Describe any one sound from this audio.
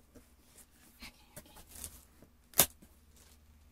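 Cardboard box flaps rustle and thump as they are opened.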